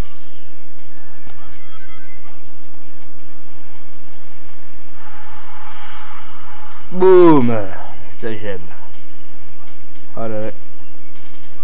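A handheld game console plays game music and sound effects through its small speaker.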